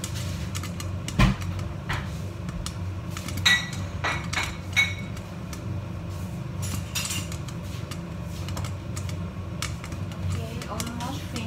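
Popcorn kernels pop and tap against a pot lid.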